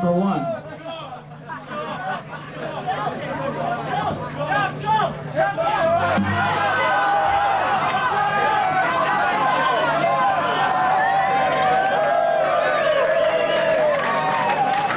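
A man talks into a microphone over loudspeakers.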